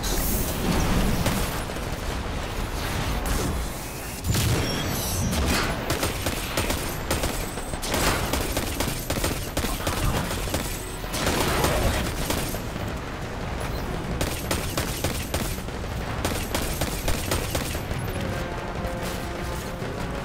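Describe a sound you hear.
Rapid gunfire rattles and cracks.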